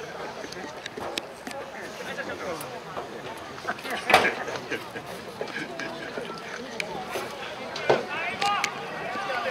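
A crowd of players and spectators chatters and cheers outdoors in a large stadium.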